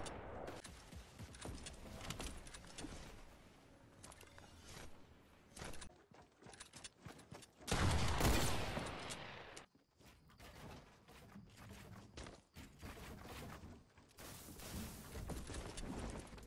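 A shotgun fires loud, sharp blasts.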